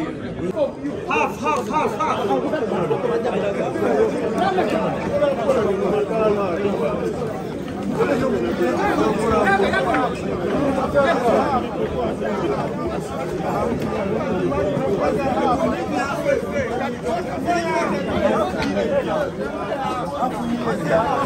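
A crowd of young men shouts and cheers loudly.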